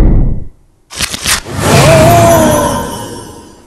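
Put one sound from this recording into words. A loud burst of sound rings out and slowly fades.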